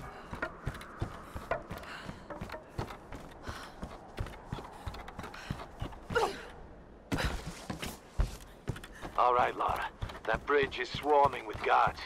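Running footsteps thud on wooden boards.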